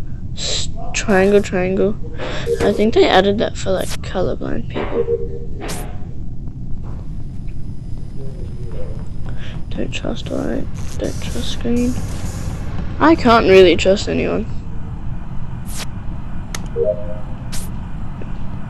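Short electronic blips and chimes sound now and then.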